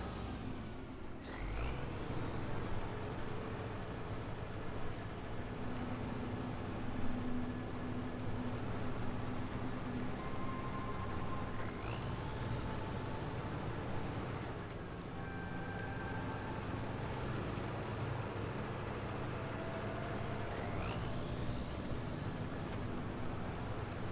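Tyres crunch over rocks and snow.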